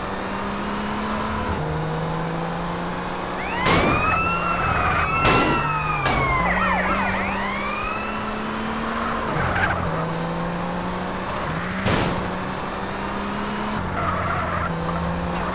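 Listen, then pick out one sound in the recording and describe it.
A sports car engine drones, shifting gears as it speeds along.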